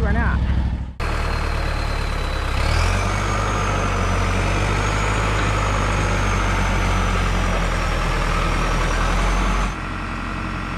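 A tractor engine runs with a steady drone.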